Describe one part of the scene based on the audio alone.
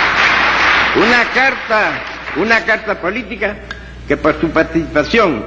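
An elderly man reads out a speech into a microphone.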